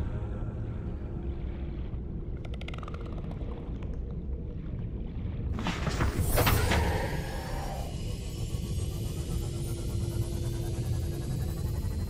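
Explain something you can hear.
Deep underwater ambience rumbles low and steady.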